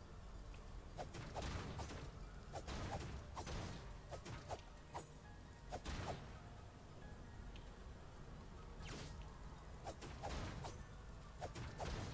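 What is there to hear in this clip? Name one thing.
Quick blade swipes whoosh through the air.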